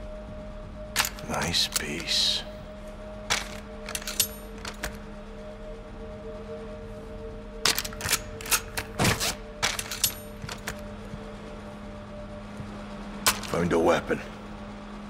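Metal weapon parts click and clack as guns are handled.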